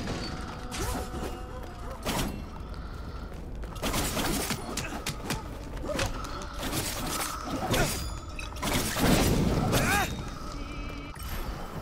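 A sword swishes and clangs in quick slashes.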